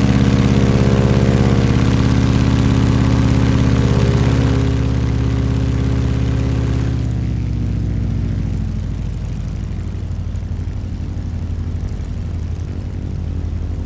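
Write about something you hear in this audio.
A propeller plane's engine drones steadily, dropping to a lower hum partway through.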